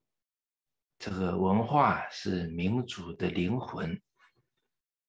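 An elderly man speaks calmly and clearly into a nearby microphone.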